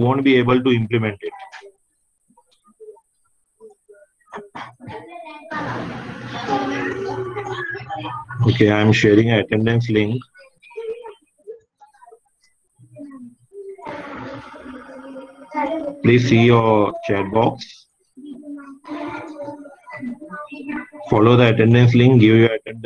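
A young man explains calmly over an online call, with pauses.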